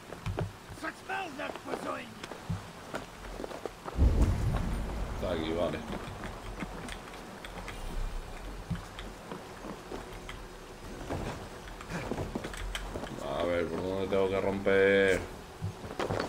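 A young man talks casually into a headset microphone.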